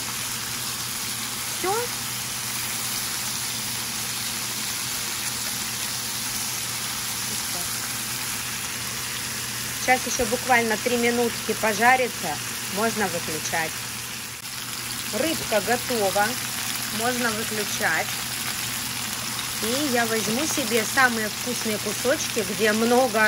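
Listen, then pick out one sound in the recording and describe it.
Oil sizzles steadily in a frying pan.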